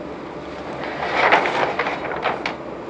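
A large sheet of paper rustles as it is flipped over.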